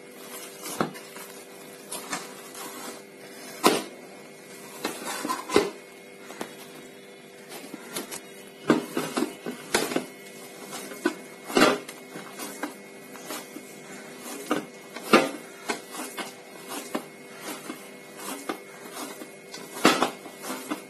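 Hands knead soft dough in a metal bowl, with dull squelches and thumps.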